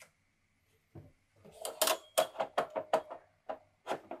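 A metal cutting arm clanks as it is moved.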